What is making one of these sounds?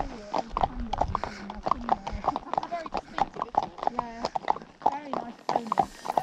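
Horses' hooves clop steadily on a hard track.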